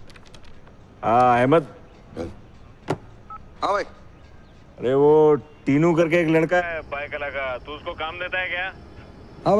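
A younger man talks into a phone.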